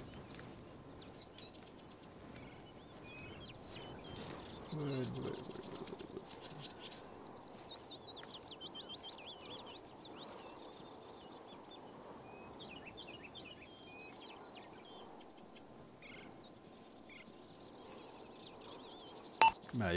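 Footsteps crunch through dry leaves on the forest floor.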